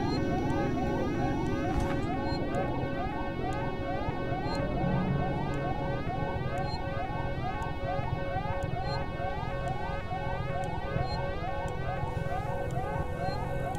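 An electronic motion tracker beeps in a quick, steady rhythm of rising chirps.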